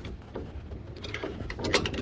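A metal latch clanks on a trailer door.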